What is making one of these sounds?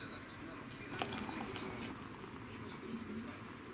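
Beer pours into a glass and fizzes.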